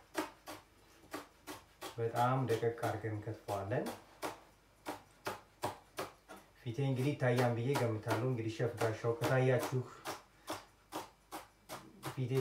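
A knife chops quickly and steadily on a cutting board.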